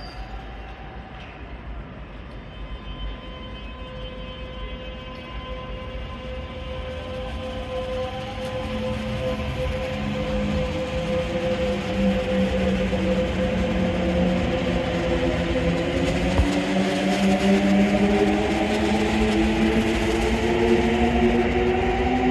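An electric train pulls into the station and rolls past close by, its motors whining and rising in pitch.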